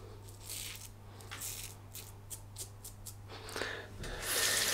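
A razor scrapes across stubble in short strokes.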